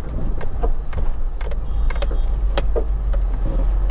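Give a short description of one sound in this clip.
Traffic passes on a wide road.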